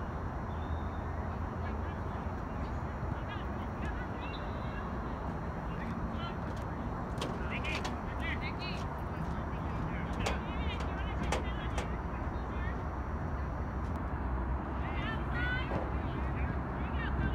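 Players shout to each other in the distance across an open field.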